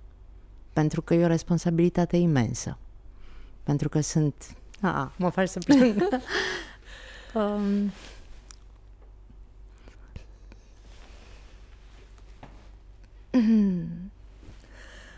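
A woman speaks calmly and closely into a microphone, with pauses.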